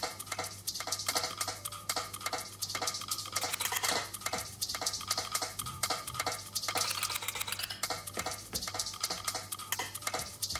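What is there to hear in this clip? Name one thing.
A record is scratched back and forth.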